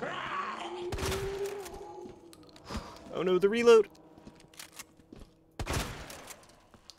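A handgun fires loudly.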